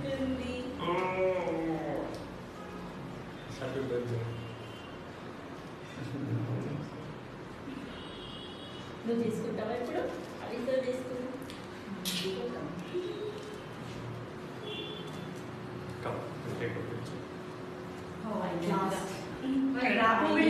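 A young man talks gently and playfully close by.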